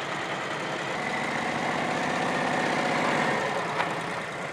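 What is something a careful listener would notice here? A motorcycle engine revs nearby.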